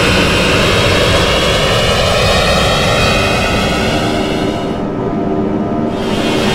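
Jet engines roar steadily with a high whine.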